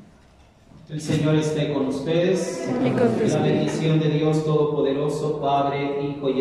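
A group of men and women sings loudly in an echoing hall.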